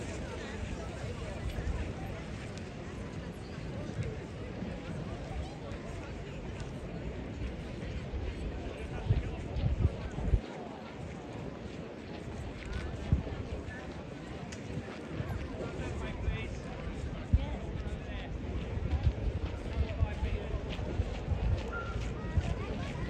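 A crowd of people chatters at a distance.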